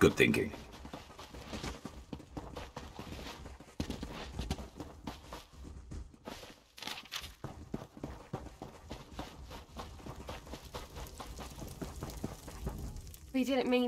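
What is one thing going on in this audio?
Footsteps run over grass and earth.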